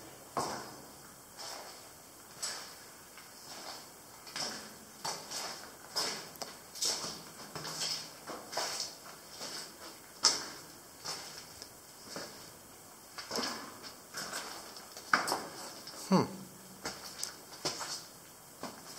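Footsteps crunch and splash on wet, gritty ground in an echoing tunnel.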